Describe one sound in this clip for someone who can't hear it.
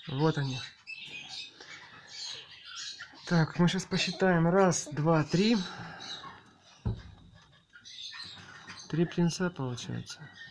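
Young parrot chicks squawk and chirp loudly close by.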